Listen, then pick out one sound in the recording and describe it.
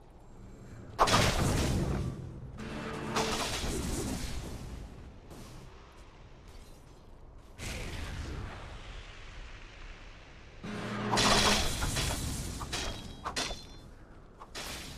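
Magic spells whoosh and crackle in short bursts during a fight.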